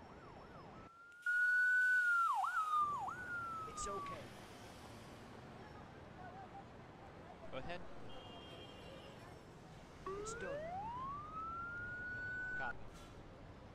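A police siren wails, rising and falling in pitch.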